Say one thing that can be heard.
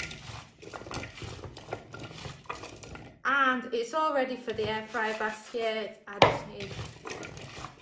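Chunks of squash rustle and clink against a glass bowl as they are tossed by hand.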